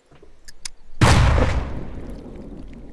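A gunshot bangs loudly and echoes away.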